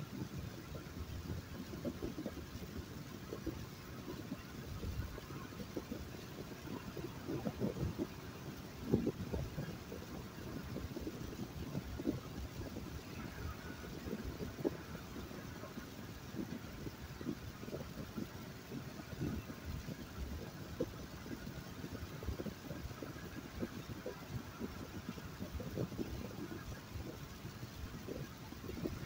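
A car engine hums steadily with road rumble from inside a moving vehicle.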